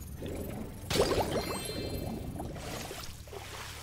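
Water splashes loudly.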